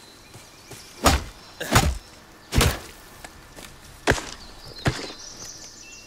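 An axe chops into wood with heavy, dull thuds.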